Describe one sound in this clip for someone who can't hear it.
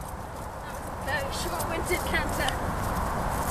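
A horse canters across grass, its hoofbeats thudding closer.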